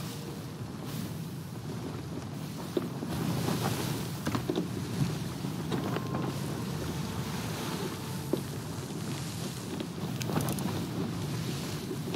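Strong wind roars across open water.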